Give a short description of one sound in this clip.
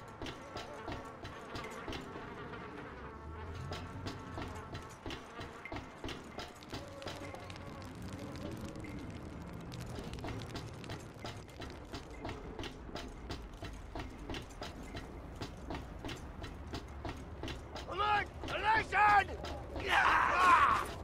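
Boots clomp steadily on metal floors and stairs.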